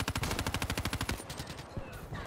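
Rapid gunfire rattles in a fast burst.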